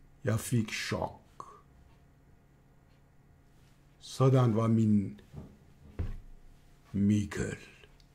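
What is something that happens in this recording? An elderly man speaks close to the microphone with animated, expressive emphasis.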